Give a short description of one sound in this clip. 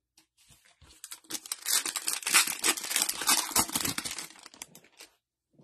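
Gloved hands crinkle and tear a foil wrapper.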